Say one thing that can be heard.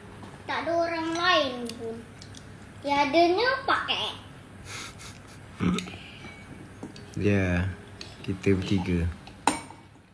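A young girl speaks playfully close by.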